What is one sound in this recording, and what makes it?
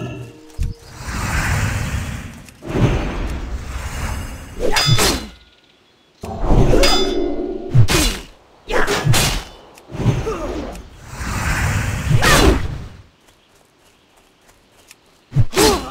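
Magic spells whoosh and shimmer.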